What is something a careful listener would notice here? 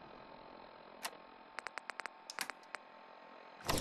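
Short menu clicks tick quickly.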